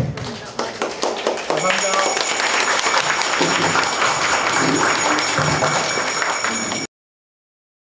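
A small group of people clap their hands.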